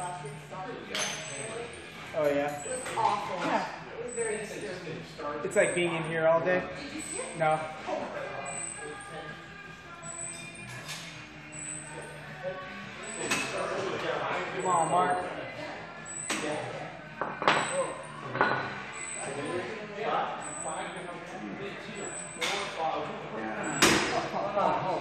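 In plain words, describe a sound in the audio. A weight stack clanks on a gym machine.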